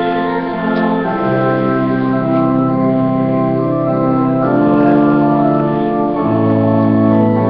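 A congregation of men and women sings together in a large echoing hall.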